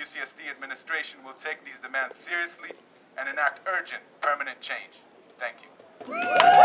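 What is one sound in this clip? A man speaks loudly through a megaphone outdoors.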